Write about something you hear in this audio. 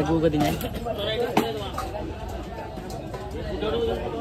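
Tomatoes clatter into a metal bowl.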